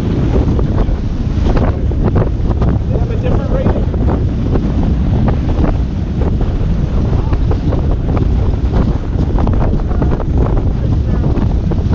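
Waves splash and rush against a sailing boat's hull.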